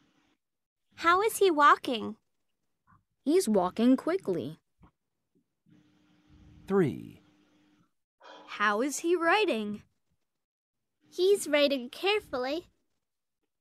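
A woman speaks slowly and clearly, heard over an online call.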